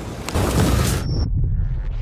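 A lightsaber hums.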